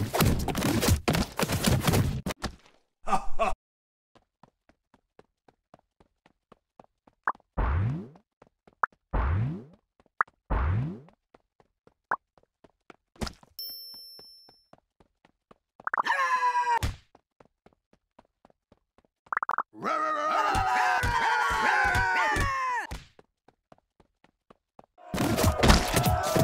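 Cartoonish game sound effects thump and splat in quick bursts.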